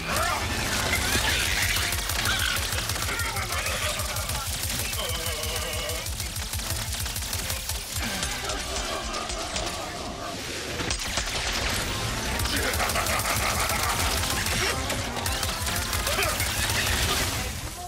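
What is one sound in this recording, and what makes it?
Loud explosions boom repeatedly.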